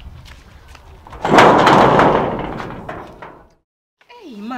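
A metal gate rattles and bangs as a hand pushes it.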